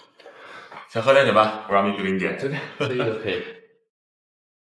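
A young man asks a question calmly nearby.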